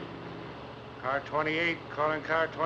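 A man speaks calmly inside a car.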